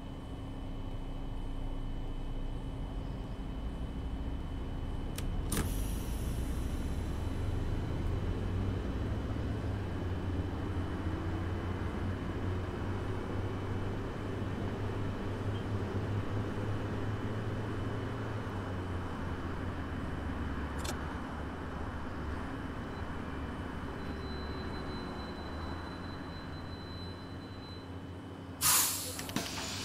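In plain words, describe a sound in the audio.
A bus engine rumbles steadily as it drives, growing louder and then easing off.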